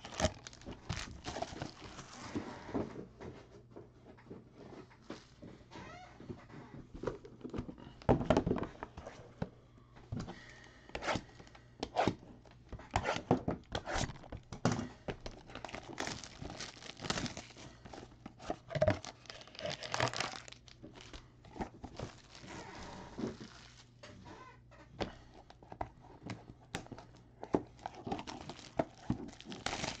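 Foil card packs crinkle and rustle as hands handle them.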